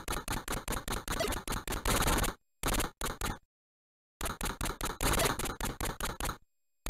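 Rapid electronic gunshots crackle in quick bursts.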